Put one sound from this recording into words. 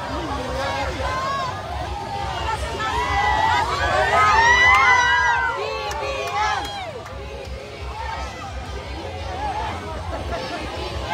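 A large crowd outdoors cheers and shouts excitedly.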